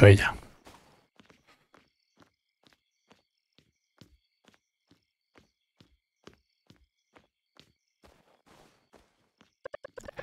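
Footsteps tap along the ground at a walking pace.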